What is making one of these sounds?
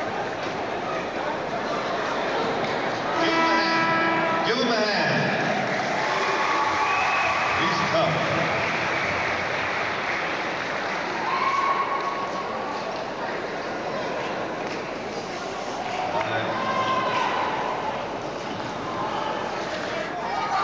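People in a small crowd talk and call out in a large echoing gym.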